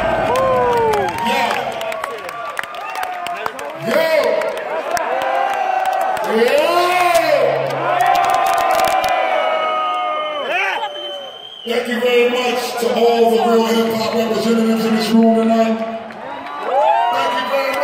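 A man raps loudly through a microphone in a large echoing hall.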